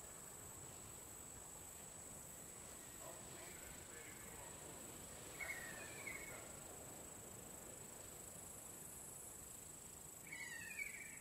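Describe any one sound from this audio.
A soft wind blows steadily outdoors.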